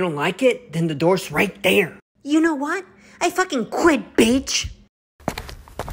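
A young man speaks with animation, close up.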